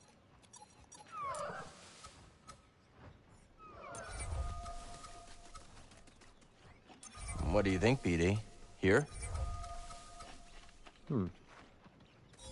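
A bright magical shimmer chimes as a plant sprouts.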